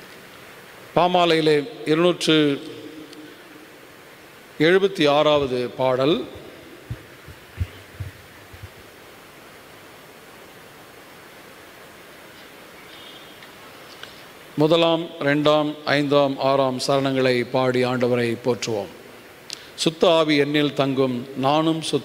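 A middle-aged man speaks slowly and calmly through a microphone in an echoing hall, with long pauses.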